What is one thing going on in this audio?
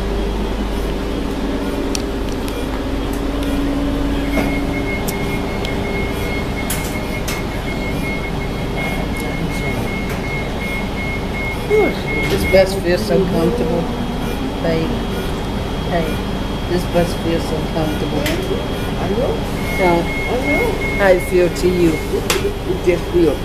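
A bus engine hums steadily throughout.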